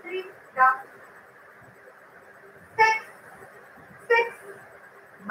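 A young woman speaks in short, clear bursts, as if counting aloud.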